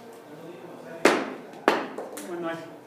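Objects hit the floor with two sharp thuds.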